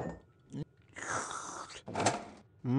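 A drink is slurped noisily through a straw.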